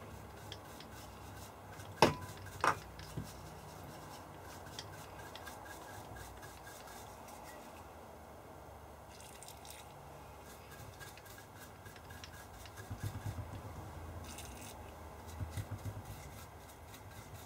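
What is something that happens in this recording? A small brush scrubs lightly against metal parts.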